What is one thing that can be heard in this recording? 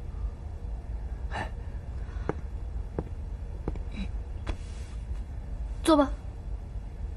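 A young woman speaks in surprise, close by.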